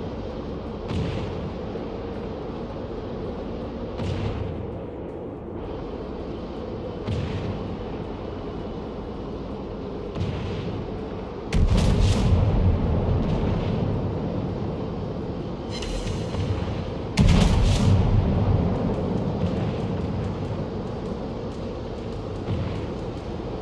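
Shells splash into water with deep thuds.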